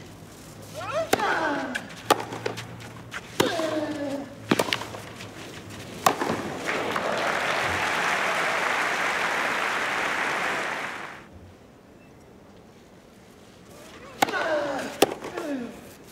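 A tennis ball is struck hard with racquets in a rally.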